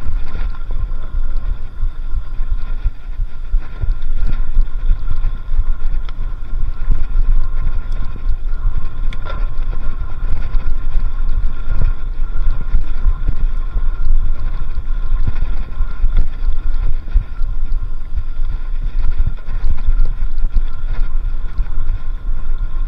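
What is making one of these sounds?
Bicycle tyres roll and bump over a dirt trail.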